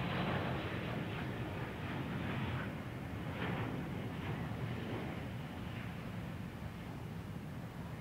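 A jet airliner roars loudly close by as it comes in to land.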